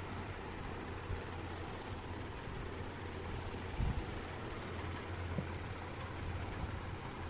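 A hand rustles through hanging bundles of yarn.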